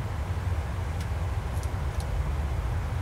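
Switches click a few times.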